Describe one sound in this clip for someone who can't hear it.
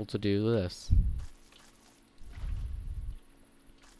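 Water splashes as a bucket is emptied.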